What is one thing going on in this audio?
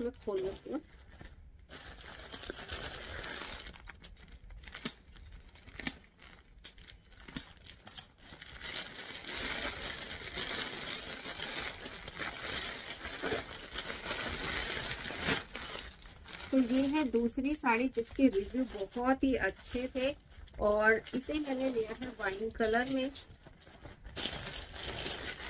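Plastic packaging rustles and crinkles as it is handled and torn open.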